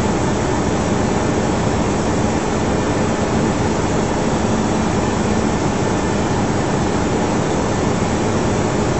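Wind rushes loudly past an aircraft.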